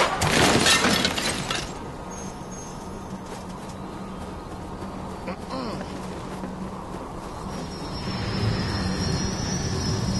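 Footsteps patter quickly on sand.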